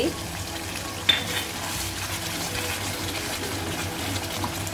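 A wooden spatula scrapes and stirs through the sauce.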